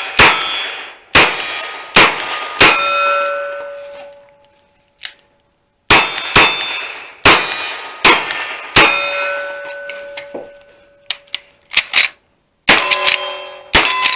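A gun fires sharp, loud shots in quick bursts outdoors.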